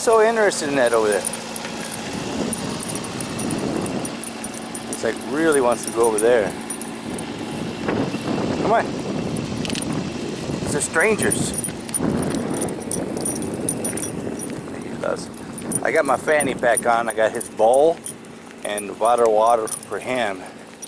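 A small dog's paws patter softly on pavement.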